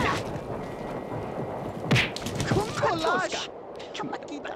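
A scuffle thumps and crashes in a brief comic fight.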